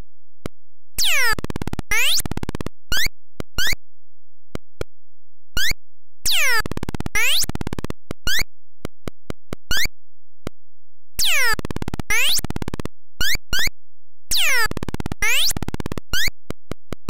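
Electronic game tones sweep in quick falling bursts as points are collected.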